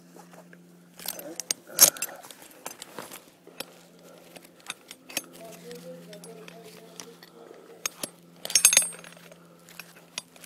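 Metal climbing hardware clinks and rattles against rope close by.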